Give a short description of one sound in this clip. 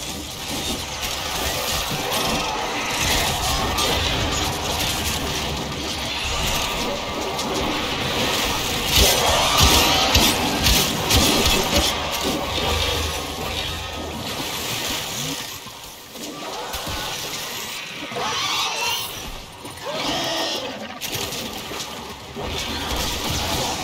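Weapons fire in rapid bursts.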